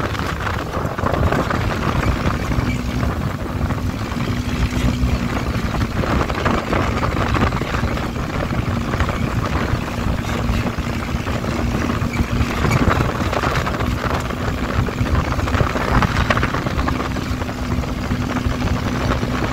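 Tyres rumble over sand.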